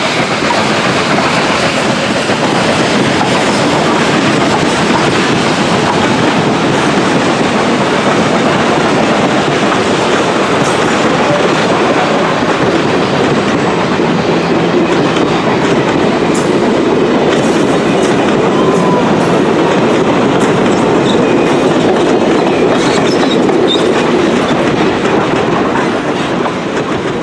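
Passenger train cars rumble and clatter steadily along the rails close by.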